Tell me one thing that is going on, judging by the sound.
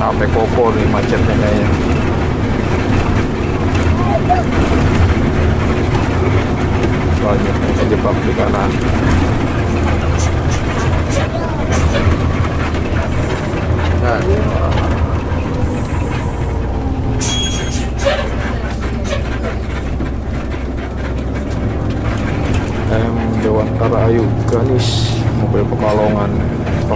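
A bus engine drones steadily from inside the bus.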